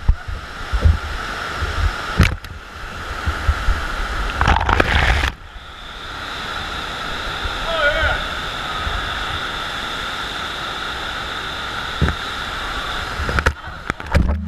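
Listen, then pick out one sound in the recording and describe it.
Water rushes steadily over a wave ride.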